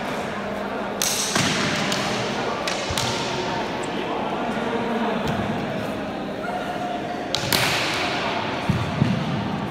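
Practice swords clack together in quick sharp knocks, echoing in a large hall.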